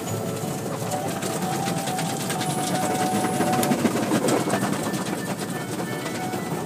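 Spinning cloth strips of a car wash slap and swish across the glass.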